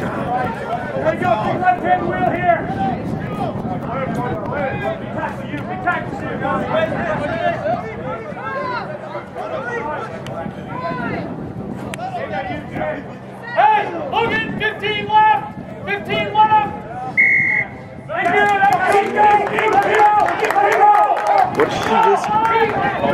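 Players shout calls to each other across an open field.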